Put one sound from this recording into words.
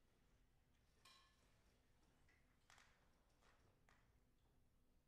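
Brass instruments play short, soft notes in a large echoing hall.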